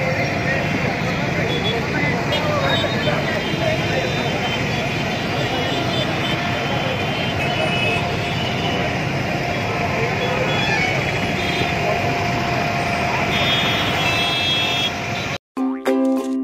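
Motorbike and car engines hum in passing traffic.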